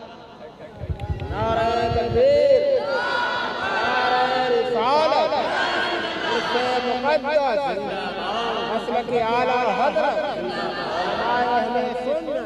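A man sings in a melodic recital through a microphone.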